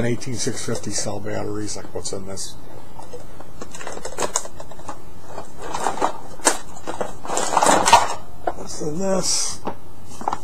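A plastic case full of small items rattles as it is shaken.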